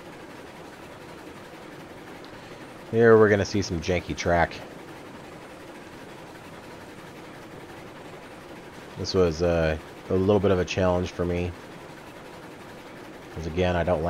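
A steam locomotive chugs steadily along.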